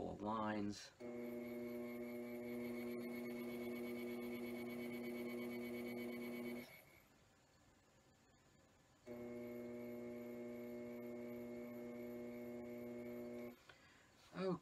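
A potter's wheel motor hums steadily.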